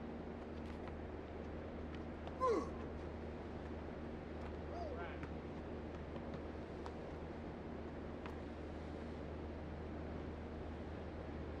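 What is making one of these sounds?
A basketball bounces on a court floor.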